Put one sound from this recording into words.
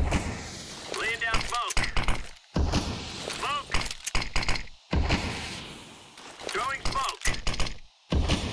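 A grenade pin clicks as it is pulled.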